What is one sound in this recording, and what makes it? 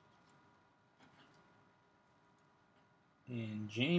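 A card wrapper crinkles softly as it is handled.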